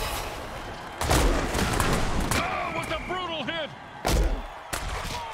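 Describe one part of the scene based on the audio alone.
Heavy armoured players crash together with loud thuds.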